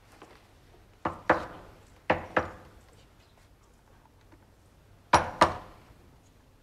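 A boy knocks on a wooden door.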